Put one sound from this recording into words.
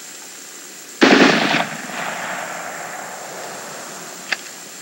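A rifle fires a single loud shot outdoors, echoing away.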